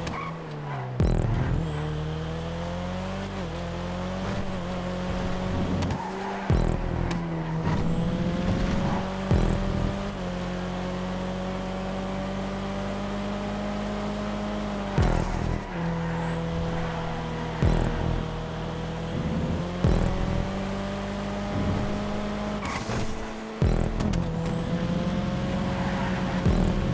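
A car's exhaust pops and crackles when the driver lets off the throttle.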